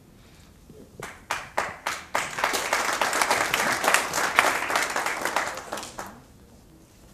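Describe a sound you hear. An audience claps.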